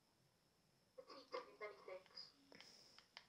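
A person speaks quietly into a microphone.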